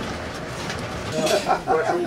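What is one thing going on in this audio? Several men chat and laugh together.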